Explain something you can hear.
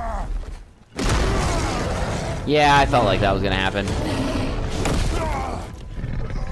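A giant creature roars loudly.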